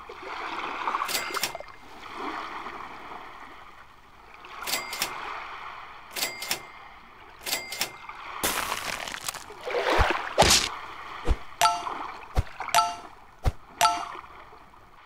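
Short electronic chimes ring out.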